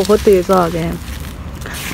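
Loose sand pours and patters down.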